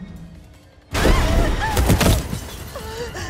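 A heavy metal frame crashes loudly to the ground.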